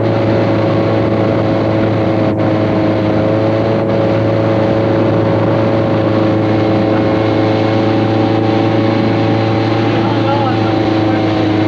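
Water rushes and splashes under a towed inflatable tube.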